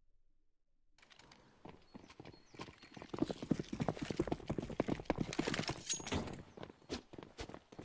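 Footsteps of game characters patter quickly on stone.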